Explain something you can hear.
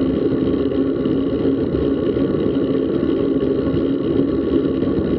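Wind buffets loudly and steadily past a moving bicycle.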